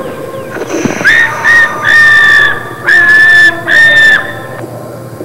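A young boy yells loudly and long, close by.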